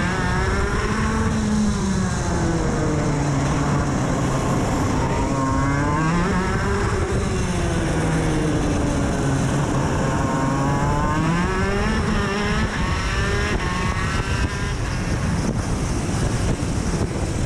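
Wind rushes and buffets loudly past.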